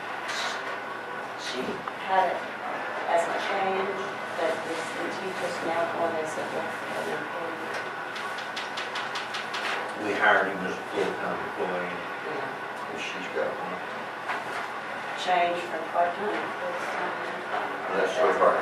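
An elderly man talks quietly in a room.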